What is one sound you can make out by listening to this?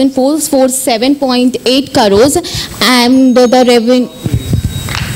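A young woman speaks with animation through a microphone and loudspeakers.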